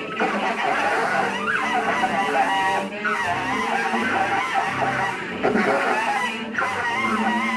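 A cello is bowed in low, scraping strokes.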